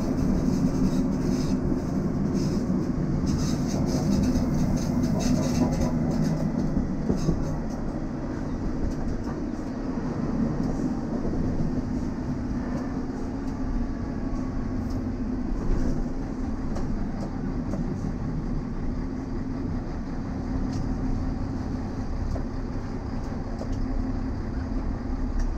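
A diesel railcar rumbles along and slows into a station.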